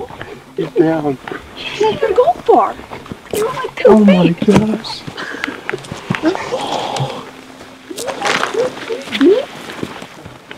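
Men talk quietly close by, outdoors.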